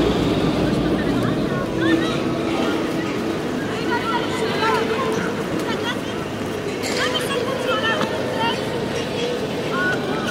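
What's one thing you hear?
A crowd of people murmurs at a distance across an open paved square.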